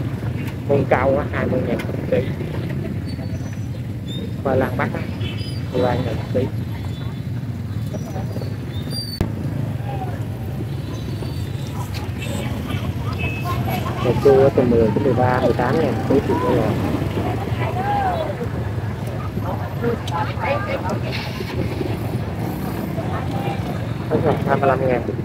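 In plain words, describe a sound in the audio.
Many people chatter and call out nearby in a busy open-air crowd.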